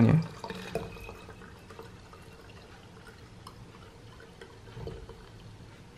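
Liquid pours into a plastic bottle.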